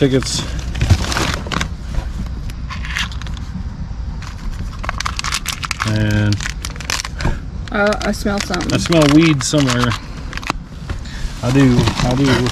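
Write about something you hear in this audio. Paper and cardboard packets rustle and crinkle as they are handled.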